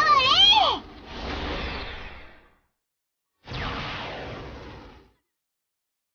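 An energy blast whooshes past.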